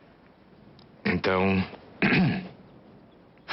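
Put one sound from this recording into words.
A man speaks in a low voice, close by.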